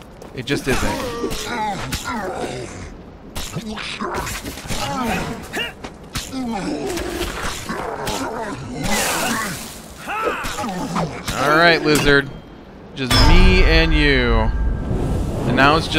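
Weapons clash and strike in a fierce fight.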